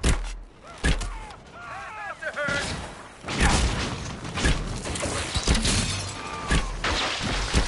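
Magic bolts whoosh and crackle as they fly.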